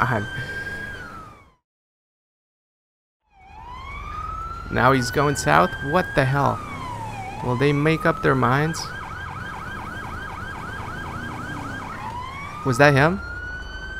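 A police siren wails, switching between rising and falling tones and rapid yelps.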